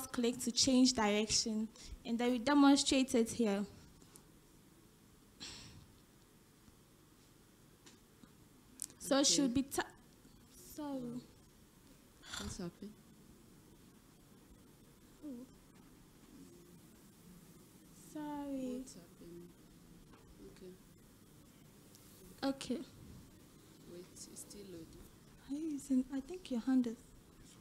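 A young woman speaks calmly into a microphone, with long pauses.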